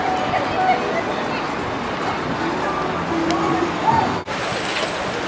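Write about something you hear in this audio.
A crowd of people chatters and walks about outdoors.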